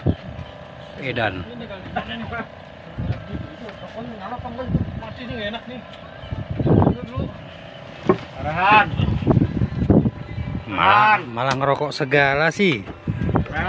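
Men talk and call out nearby with animation.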